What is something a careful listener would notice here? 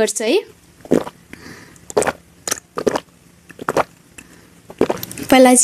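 A young woman gulps water from a glass.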